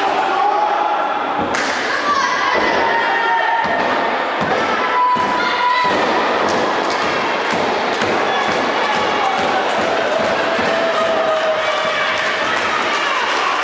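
A crowd cheers and shouts in a hall with echo.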